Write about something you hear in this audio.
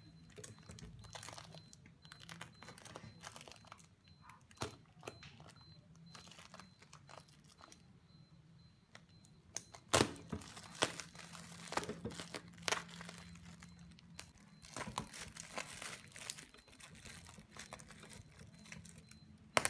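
Plastic wrapping crinkles and rustles under hands.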